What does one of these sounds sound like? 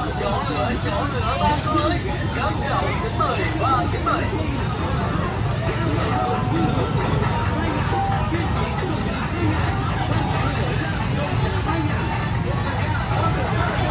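A crowd of people chatter all around outdoors.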